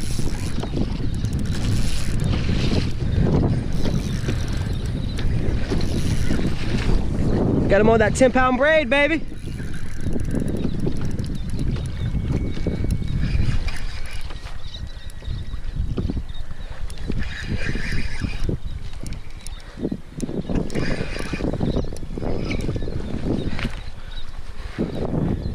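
Wind buffets loudly outdoors on open water.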